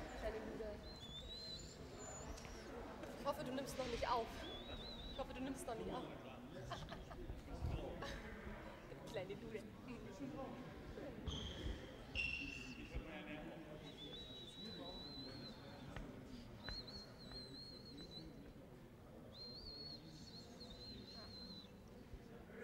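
Sports shoes squeak on a hall floor.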